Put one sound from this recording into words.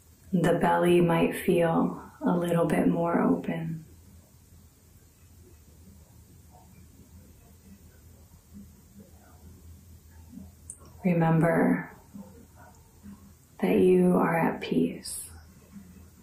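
A young woman speaks calmly and softly into a close microphone, with long pauses.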